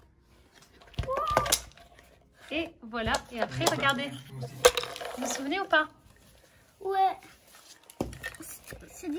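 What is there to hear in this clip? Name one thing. Wooden puzzle pieces clack against each other.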